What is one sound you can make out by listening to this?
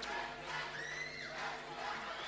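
A young woman sings into a microphone.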